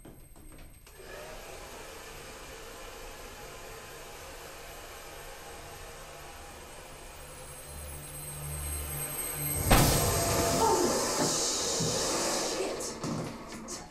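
A hair dryer blows with a steady whoosh.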